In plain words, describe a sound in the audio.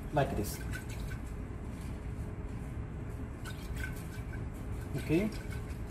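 Liquid sloshes softly as a glass flask is swirled.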